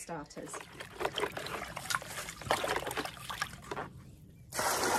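Water sloshes and splashes as a hand stirs it in a plastic pot.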